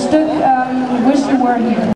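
A crowd of adults chats nearby outdoors.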